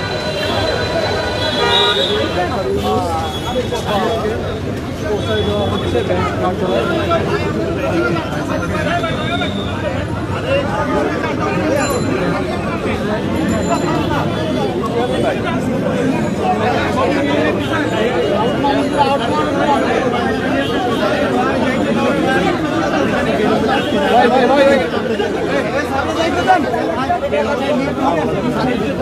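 A dense crowd of men shouts and talks over each other close by.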